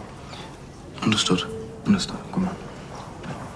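A younger boy answers quietly up close.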